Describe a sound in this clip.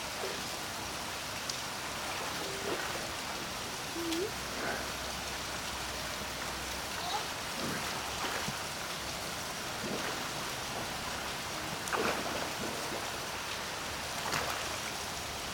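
Water splashes sharply now and then as an animal plays in it.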